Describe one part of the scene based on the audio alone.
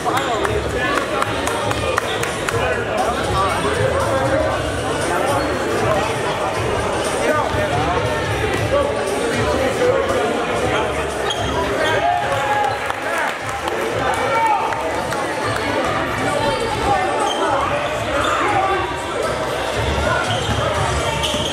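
A crowd of people chatter throughout a large echoing gym.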